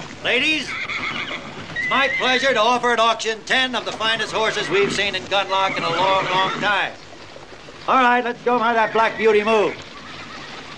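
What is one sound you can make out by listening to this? A man calls out loudly and rapidly to a crowd outdoors.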